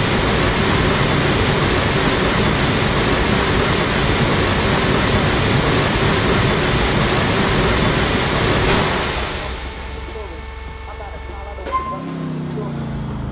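A car engine idles and rumbles low.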